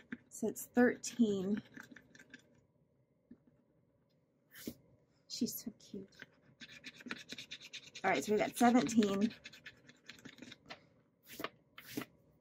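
A pen scratches softly on paper.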